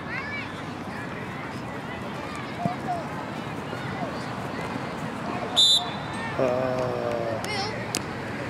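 Children shout and cheer across an open playing field.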